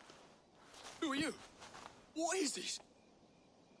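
A young man asks questions in alarm.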